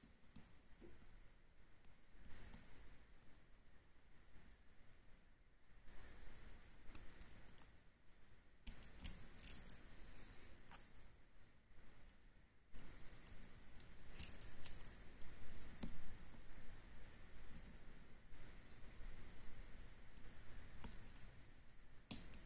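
Metal lock picks click and scrape softly inside a lock.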